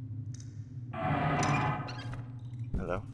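A heavy metal cover scrapes across concrete.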